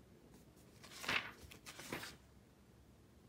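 An eraser rubs briskly on paper.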